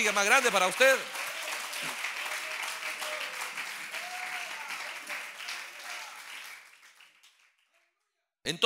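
A crowd claps hands together.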